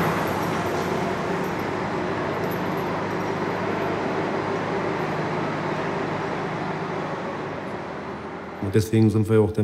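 Workers clank tools against rails, echoing in a large tunnel.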